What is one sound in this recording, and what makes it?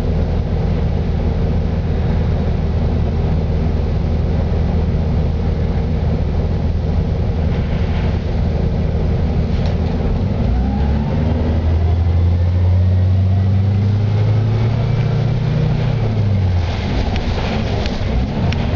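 A bus body rattles and creaks over the road.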